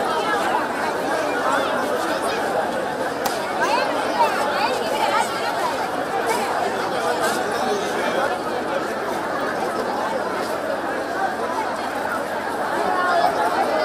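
A large crowd of men and women chatters and calls out all around, close by.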